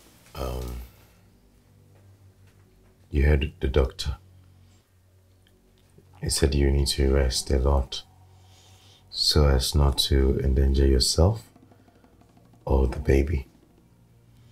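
A man speaks calmly and quietly close by.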